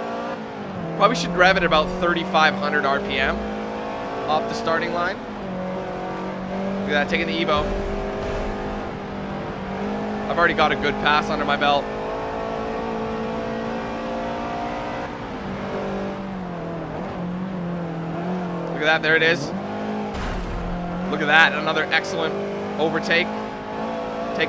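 A car engine drones steadily at high revs, its pitch dipping briefly now and then.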